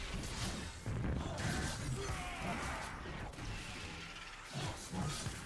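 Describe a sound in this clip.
Game spell effects whoosh and chime.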